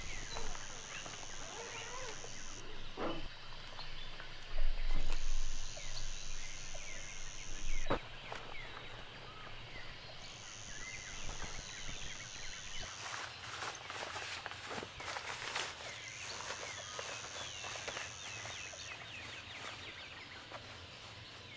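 Tent fabric rustles and flaps as it is pulled and folded.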